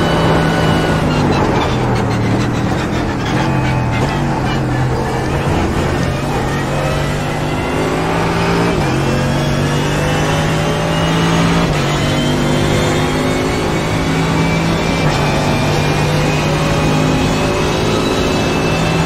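A racing car engine drops in pitch as the car brakes hard, then revs up again through the gears.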